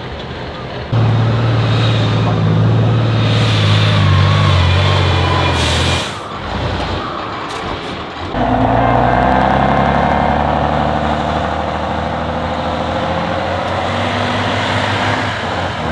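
A truck engine revs up and down as it climbs a steep slope.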